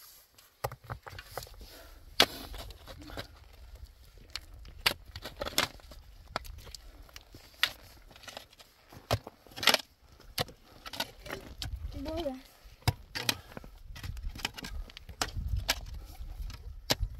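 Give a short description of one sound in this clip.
A shovel scrapes and digs into stony soil.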